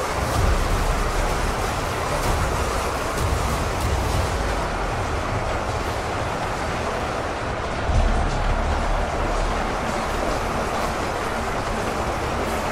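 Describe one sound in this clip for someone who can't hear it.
A vast battle roars with a din of clashing weapons.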